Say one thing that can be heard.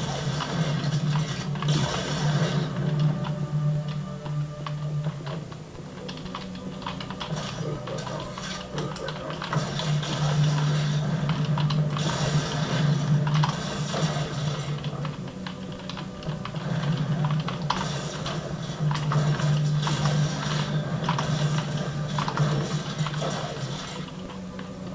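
Video game gunfire and effects play loudly through speakers.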